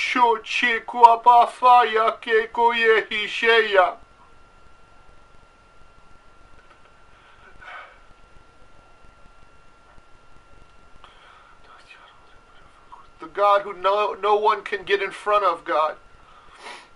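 A middle-aged man sings with feeling, close to the microphone.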